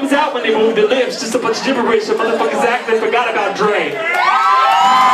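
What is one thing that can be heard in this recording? A young man raps loudly through a microphone.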